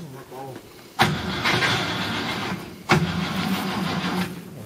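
An engine revs loudly.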